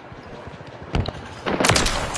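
A sniper rifle fires a single shot.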